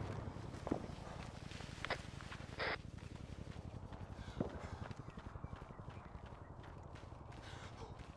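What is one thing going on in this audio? Footsteps run quickly through grass and brush.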